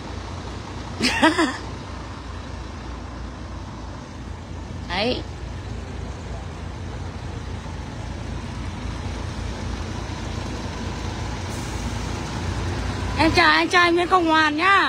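A bus horn blares a wavering musical tune in short bursts.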